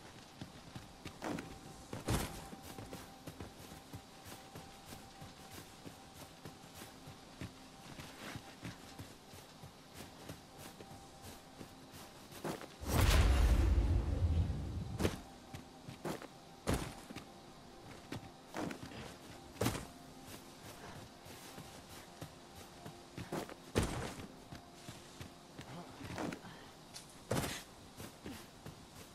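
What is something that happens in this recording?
Footsteps crunch through grass and dirt.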